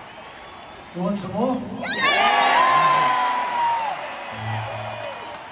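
A man speaks into a microphone, heard through loud speakers echoing across the arena.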